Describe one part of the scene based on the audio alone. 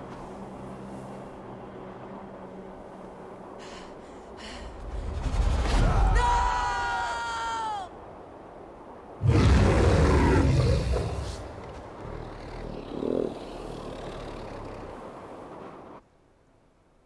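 Strong wind roars and howls outdoors.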